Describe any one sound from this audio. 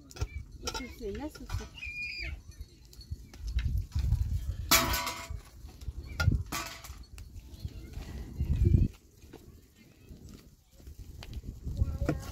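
A small wood fire crackles.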